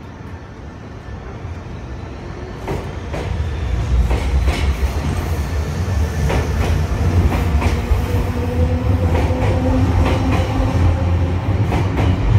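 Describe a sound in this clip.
A train rumbles past close by, growing louder.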